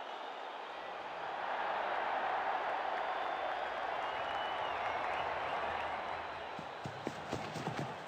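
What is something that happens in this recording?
A large crowd murmurs and cheers in a stadium.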